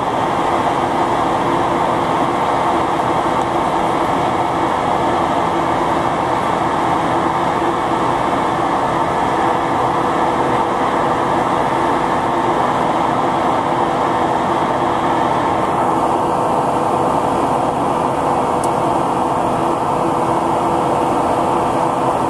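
A jet engine drones steadily in a loud aircraft cabin.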